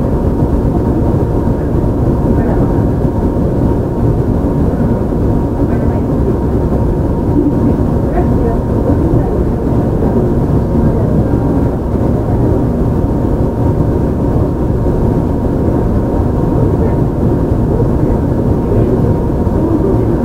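An electric train rumbles steadily along the tracks close by.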